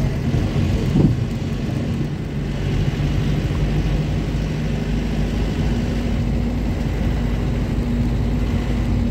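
A vehicle engine hums steadily while driving along a road.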